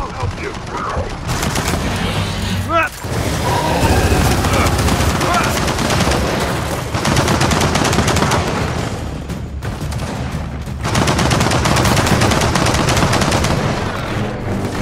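Rapid gunfire rattles loudly in bursts.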